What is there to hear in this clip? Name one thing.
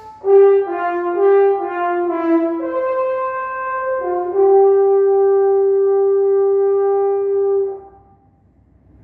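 A French horn plays a few notes and then holds a long, steady tone in a small echoing room.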